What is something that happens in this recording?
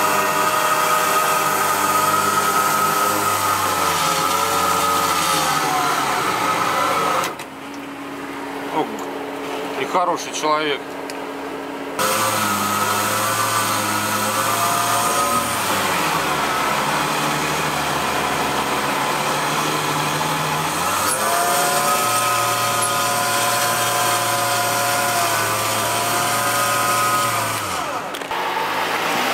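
An engine roars and revs hard, rising and falling in pitch.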